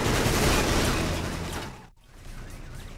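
A car engine rumbles.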